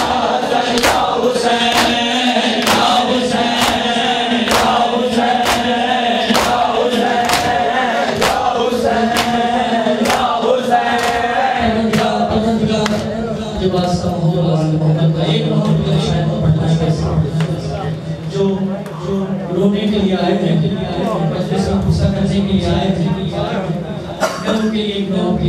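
A crowd of men beats their chests in a steady rhythm.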